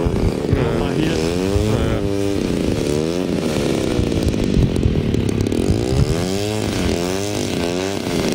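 A small model plane's electric motor whirs, its pitch rising and falling as it revs.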